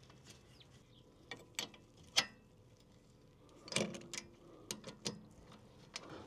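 A ratchet wrench clicks as it turns a bolt.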